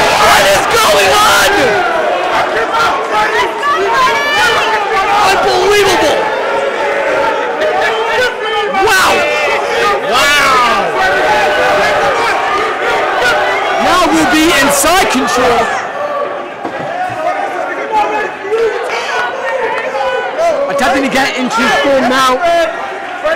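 A crowd cheers and shouts loudly around an echoing arena.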